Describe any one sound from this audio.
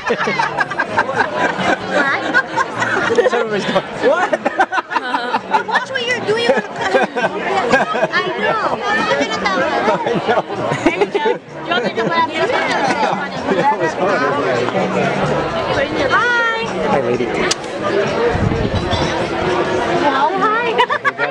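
Many people chatter and laugh all around outdoors.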